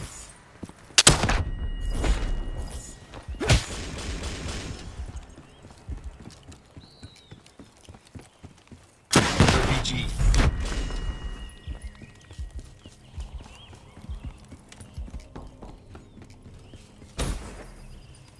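Gunshots bang sharply in short bursts.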